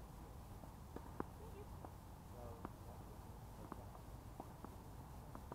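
Tennis balls are struck with rackets, with sharp pops at intervals.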